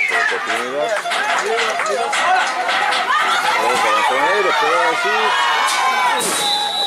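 A crowd of spectators shouts and cheers nearby outdoors.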